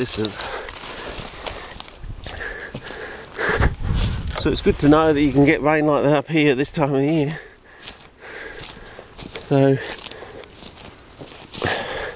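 Footsteps crunch on dry leaves and twigs.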